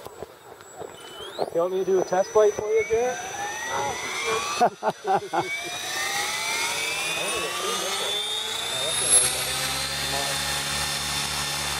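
An electric radio-controlled helicopter spools up, its motor whine rising in pitch.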